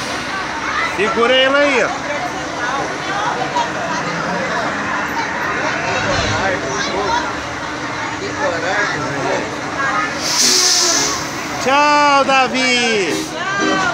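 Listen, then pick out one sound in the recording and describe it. Riders on a fairground ride scream with excitement.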